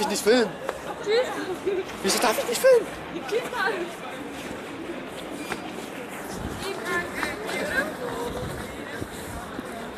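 Shoes step on a hard floor.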